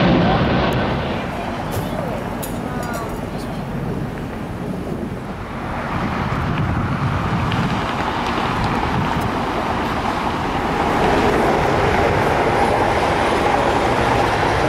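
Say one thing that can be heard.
A jet airliner's engines rumble and roar on the ground.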